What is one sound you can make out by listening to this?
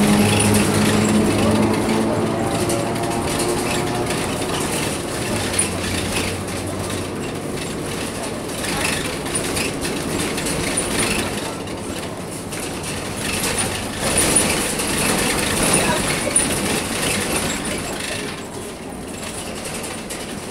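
A bus rattles and creaks over the road.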